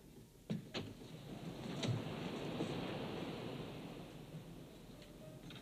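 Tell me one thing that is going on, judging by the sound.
A door swings open and shut.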